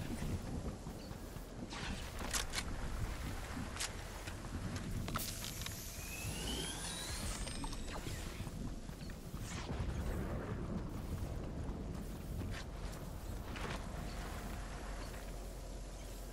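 Quick footsteps patter over grass and pavement.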